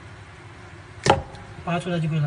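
Plastic parts click sharply as they are snapped together.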